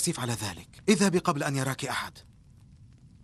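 A man speaks urgently, close by.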